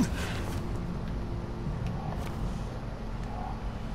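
Footsteps thud on a sheet-metal roof.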